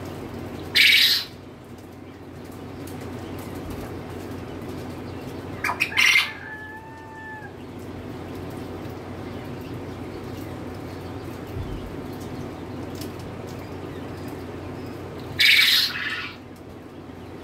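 Chickens squawk loudly in short bursts nearby.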